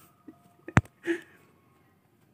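A boy laughs.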